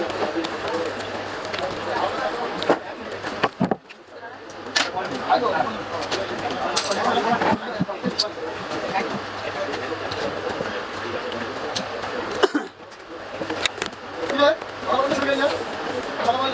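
Hands rub and press on a wooden surface.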